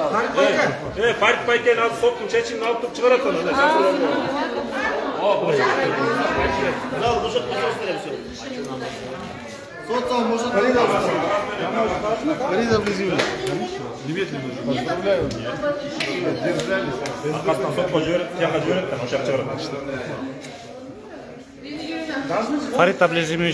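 Several men talk over one another.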